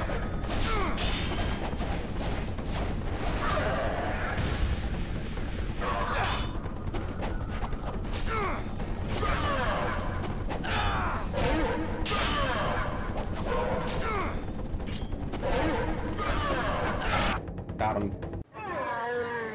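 Swords clash and ring sharply in a fight.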